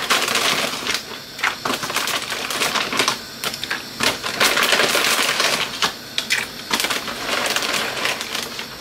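Water bubbles at a rolling boil in a pot.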